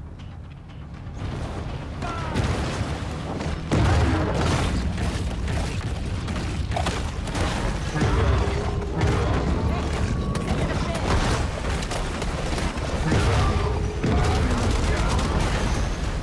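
Water splashes and churns as a shark thrashes at a boat.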